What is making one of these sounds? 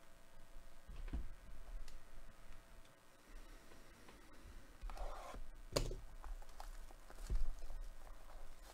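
Hands handle and rustle a cardboard box.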